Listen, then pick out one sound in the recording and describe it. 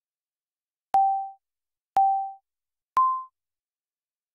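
Three short countdown beeps sound, the last one higher.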